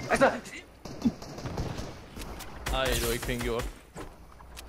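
A gun fires in quick shots.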